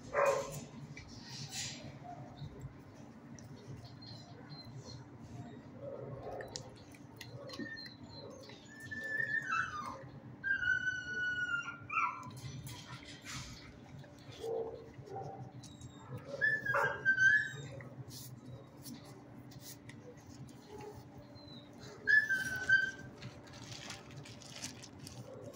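A dog sniffs close by.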